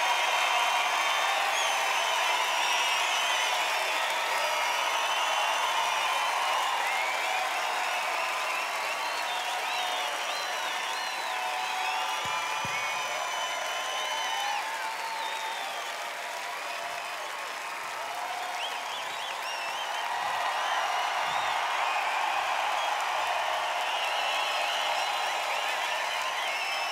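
A large crowd cheers and screams loudly in a big hall.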